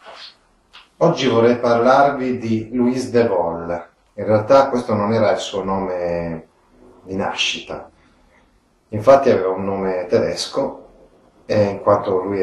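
A middle-aged man talks calmly and clearly into a nearby microphone.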